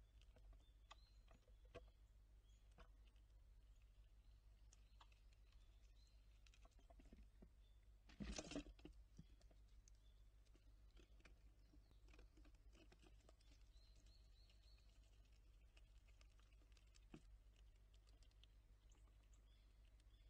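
A squirrel nibbles and crunches seeds.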